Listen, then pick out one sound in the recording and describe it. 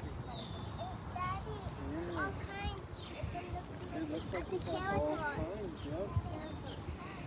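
Young children chatter nearby.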